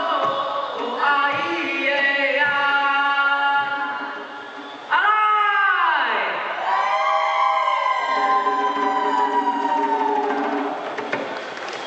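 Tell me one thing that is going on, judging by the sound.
A group of children sing and chant together in loud chorus, with long gliding calls.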